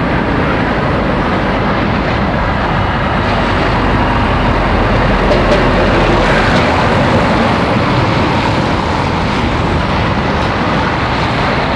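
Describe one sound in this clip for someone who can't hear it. A heavy lorry engine rumbles as it drives slowly past, close by.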